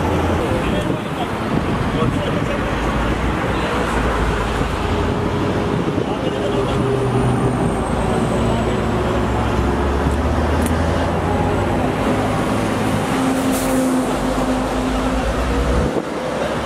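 Men talk and call out to each other nearby.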